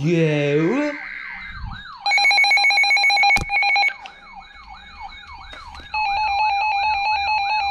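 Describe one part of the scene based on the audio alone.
A second alert receiver sounds a rising and falling chirping siren.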